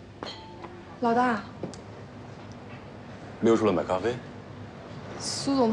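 A young woman speaks briefly and calmly.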